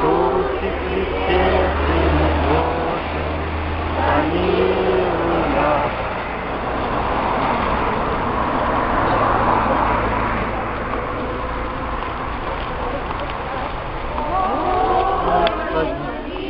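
A crowd of women sings together nearby, outdoors.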